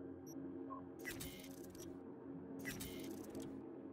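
Electronic menu sounds whoosh and click as a game menu item is selected.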